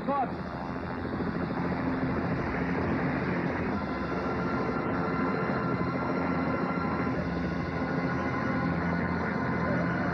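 A helicopter's rotor thuds and its turbine whines as it lifts off.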